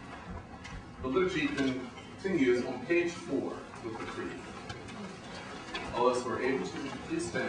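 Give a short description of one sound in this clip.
A man speaks aloud at a distance in a room with some echo, reading out in a steady voice.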